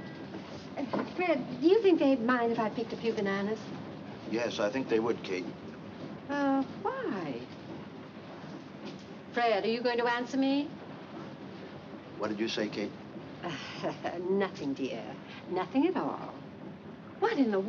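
A middle-aged woman talks with animation nearby.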